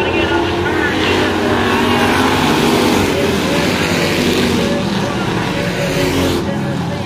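Race car engines roar loudly as the cars speed around the track.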